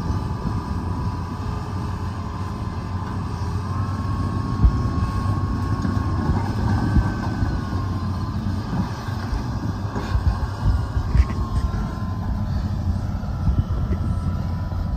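An excavator's hydraulics whine as its arm moves.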